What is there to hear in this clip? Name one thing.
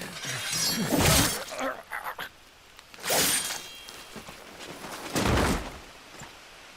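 Heavy blows strike armour with loud thuds.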